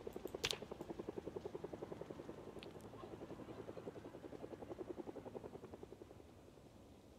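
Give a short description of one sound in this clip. A van's engine idles with a steady throbbing rumble.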